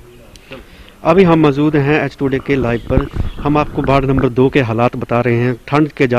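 A man speaks steadily into a microphone, close and clear.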